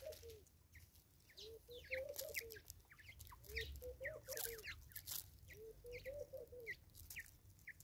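A bird gives a low, repeated cooing call close by.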